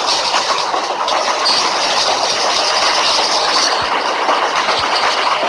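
A train engine rumbles steadily along the tracks.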